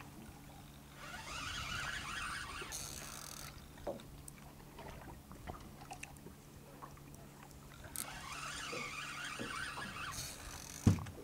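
A fishing reel whirs as its line is wound in.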